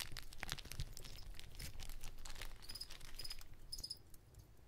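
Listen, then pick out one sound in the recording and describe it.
Pages of a book rustle as they are flipped.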